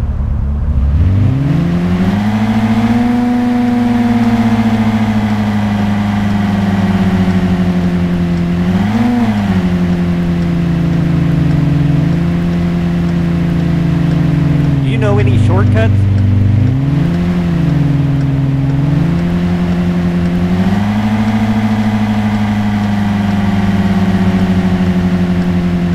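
A car engine revs up and drones steadily, its pitch rising and falling with the speed.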